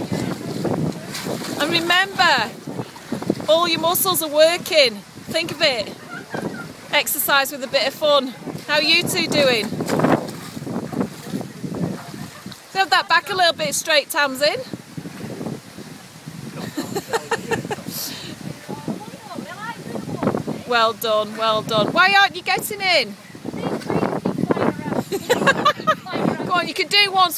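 Water splashes as a person wades and gropes through a shallow channel.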